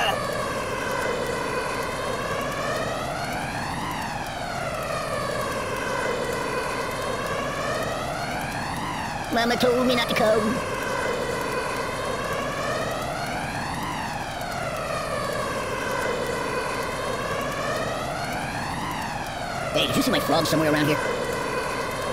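A jetpack roars steadily with a whooshing, sweeping hiss.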